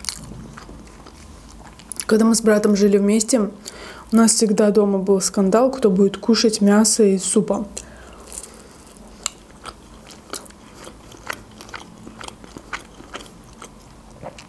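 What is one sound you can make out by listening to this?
A young woman chews food with soft, wet smacking sounds.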